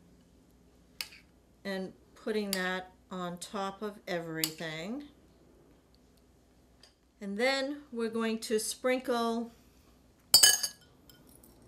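A metal spoon clinks against a glass bowl.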